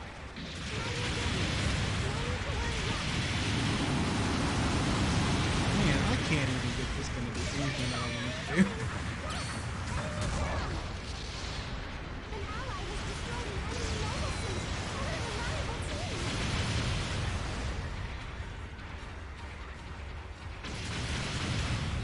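Gunfire crackles in a video game.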